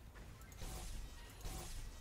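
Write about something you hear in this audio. A weapon fires a single shot.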